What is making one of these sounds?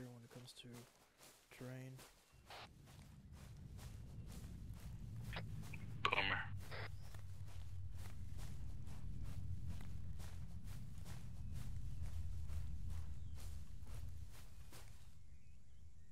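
Footsteps crunch through dry leaves and grass at a steady walking pace.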